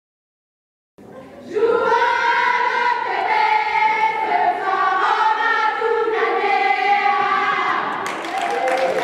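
A group of young women chant together loudly in an echoing hall.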